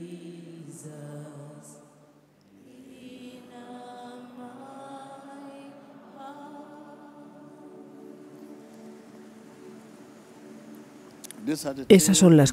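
A choir sings a slow, gentle song.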